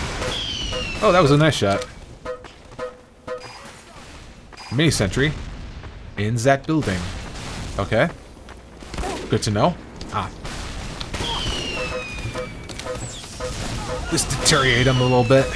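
A shotgun fires in sharp, repeated blasts.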